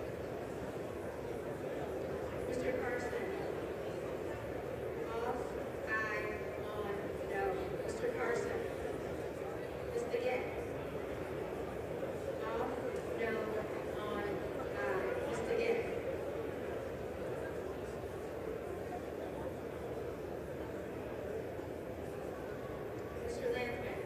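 A crowd of people chatter and murmur in a large echoing hall.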